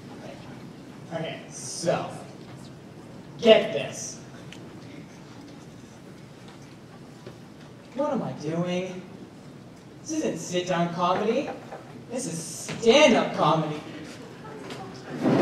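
A young man speaks through a microphone in an echoing hall, with long pauses.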